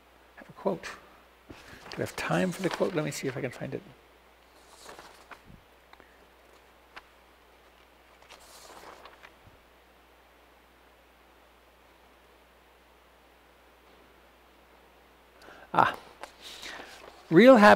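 An elderly man speaks calmly and close, through a microphone, with long pauses.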